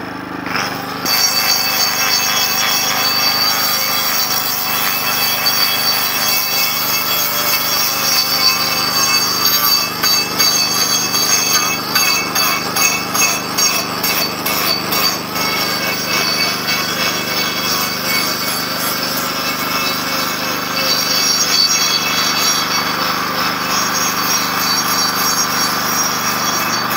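An angle grinder with a sanding disc whines against wood.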